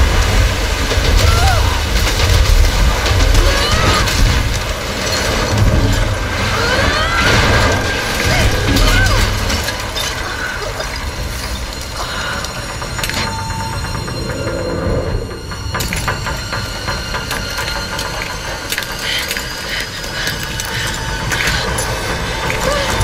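A young woman gasps and cries out in effort.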